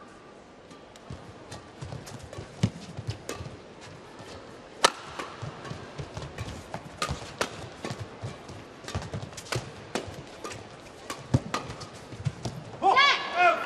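A shuttlecock is struck back and forth with sharp pops of rackets.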